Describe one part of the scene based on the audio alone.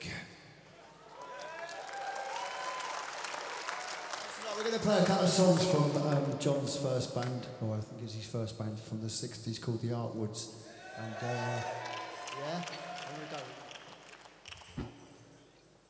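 A man sings into a microphone over amplified sound.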